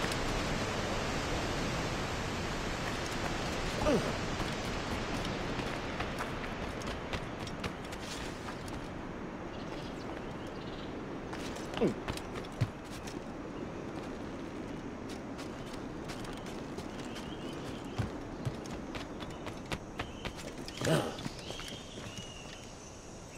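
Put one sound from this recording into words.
Footsteps thud on rock and wooden planks.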